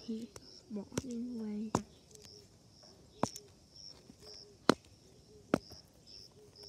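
Plastic toys knock lightly against stone.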